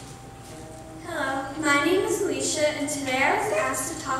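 A teenage girl speaks calmly into a microphone in an echoing hall.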